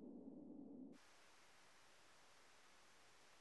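Electricity crackles and hisses softly.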